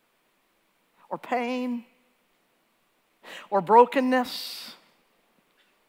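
A woman speaks slowly and expressively through a microphone, with pauses.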